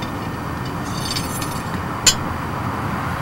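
A metal tool clinks against a cup in the ground.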